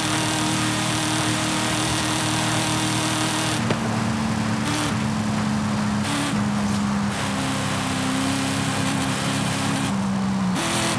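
Tyres hum loudly on the road.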